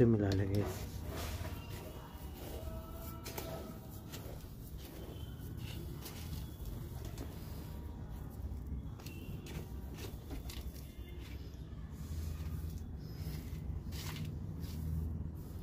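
Hands rustle and crunch through coarse gravelly soil.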